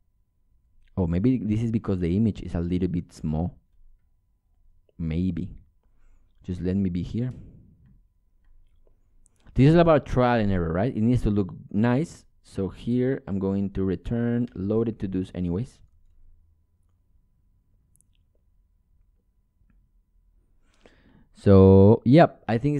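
A young man talks calmly into a close microphone, in bursts with pauses.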